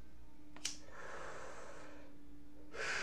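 A lighter flame hisses briefly.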